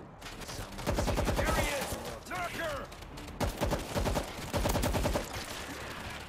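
Rapid automatic gunfire bursts out in short volleys.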